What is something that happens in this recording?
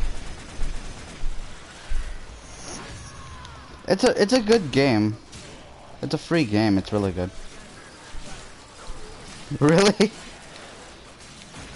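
Blades slash and clang in a fast fight.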